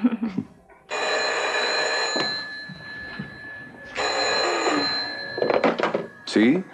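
A telephone rings twice.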